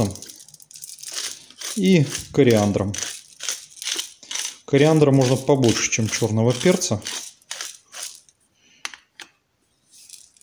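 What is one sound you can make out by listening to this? A pepper mill grinds with a dry crackle.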